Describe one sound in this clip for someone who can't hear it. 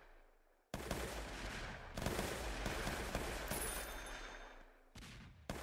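Rapid gunshots crackle and pop in quick bursts.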